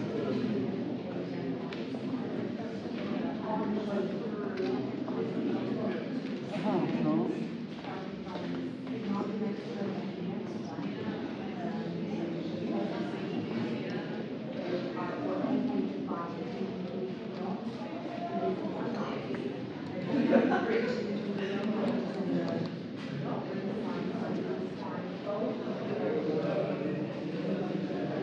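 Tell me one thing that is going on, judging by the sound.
Adult men and women chatter nearby in an echoing room.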